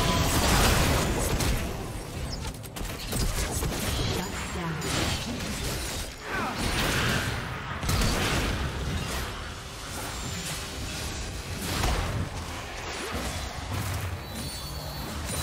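Video game spells whoosh and blast during a busy fight.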